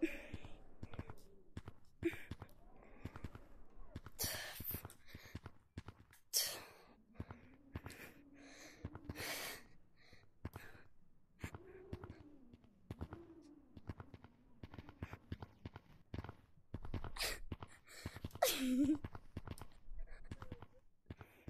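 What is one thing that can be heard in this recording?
Hands thump and pat rapidly on the ground.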